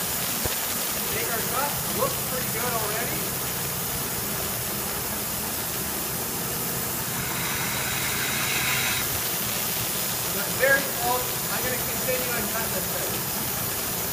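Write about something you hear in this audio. A young man talks calmly through a clip-on microphone.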